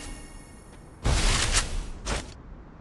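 A foam barrier bursts up with a soft crunching whoosh.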